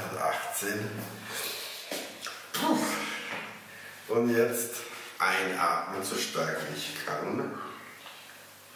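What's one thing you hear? A middle-aged man talks with animation, close to a microphone.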